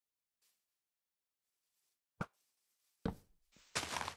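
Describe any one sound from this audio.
A wooden block thuds softly as it is placed.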